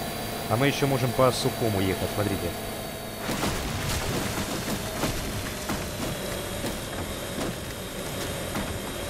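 A hovercraft engine roars steadily.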